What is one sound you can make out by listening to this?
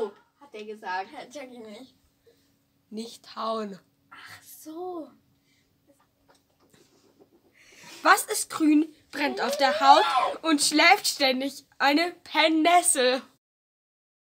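A girl talks with animation close by.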